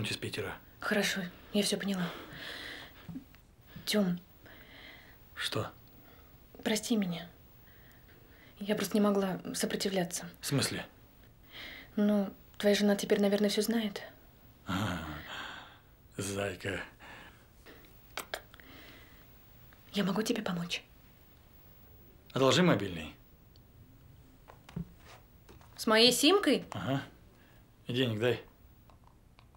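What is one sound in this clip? A man speaks quietly and gently, close by.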